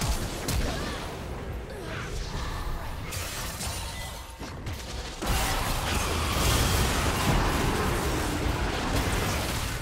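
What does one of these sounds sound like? Blows and hits thud and clang in quick succession.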